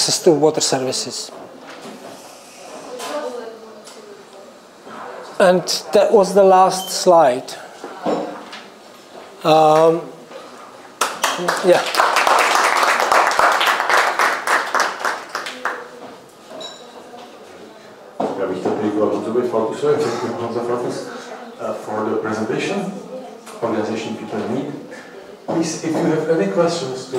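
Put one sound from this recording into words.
A middle-aged man speaks calmly into a microphone, heard through a loudspeaker in an echoing room.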